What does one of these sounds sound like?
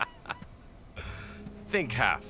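A middle-aged man laughs heartily, close by.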